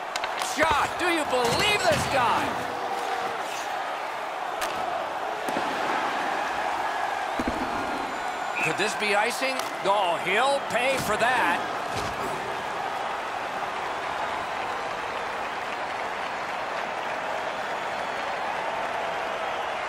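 A large crowd murmurs and cheers steadily in an echoing arena.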